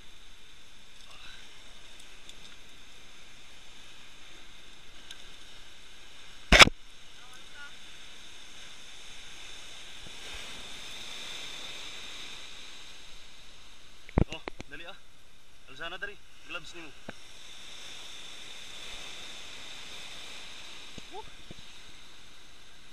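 Waves surge and break against rocks below.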